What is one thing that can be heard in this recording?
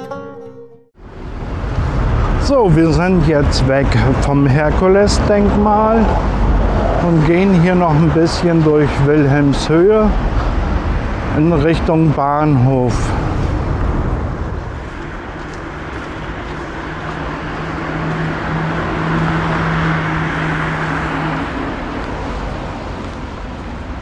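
Traffic hums steadily along a city street.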